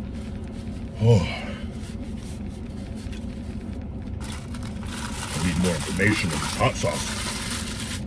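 A man speaks briefly and closely.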